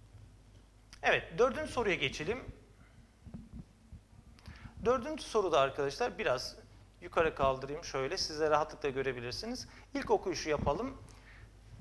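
A middle-aged man speaks calmly and clearly into a clip-on microphone, explaining.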